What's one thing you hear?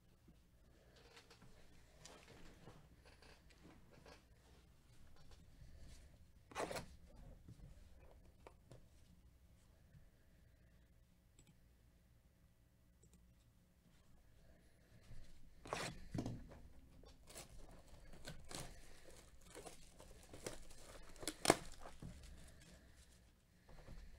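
Gloved hands turn a cardboard box over, rustling and knocking softly.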